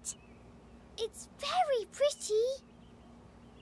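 A young girl's cartoon voice answers cheerfully.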